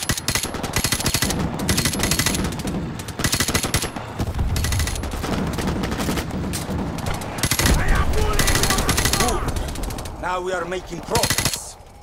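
A rifle fires rapid bursts of shots close by.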